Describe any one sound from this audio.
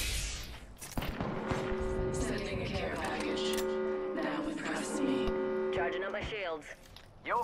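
A shield battery charges with a rising electronic hum.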